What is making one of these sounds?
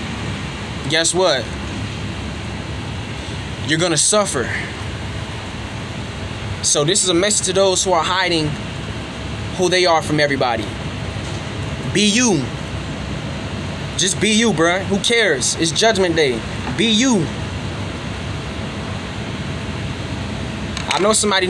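A young man speaks close up in short bursts with pauses.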